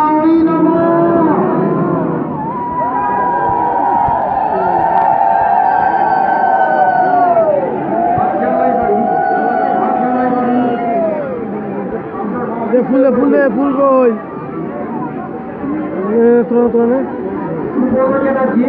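A crowd of men and women chant loudly together close by.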